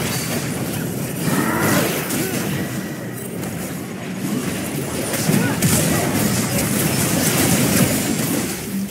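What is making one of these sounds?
Game spell effects and hits crackle and whoosh in a busy battle.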